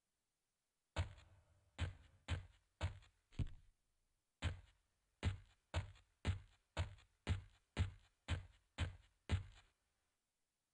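Footsteps strike a hard floor at a steady walking pace.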